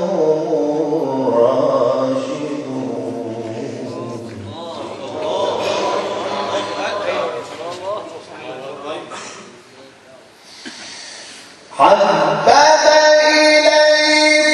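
A young man chants in a long, melodic voice through a microphone.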